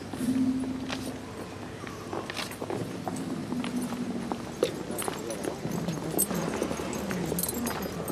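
Footsteps scuff on stone pavement nearby.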